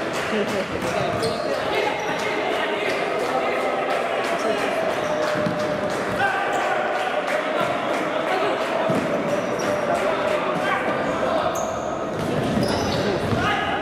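A futsal ball is kicked on a wooden floor in an echoing sports hall.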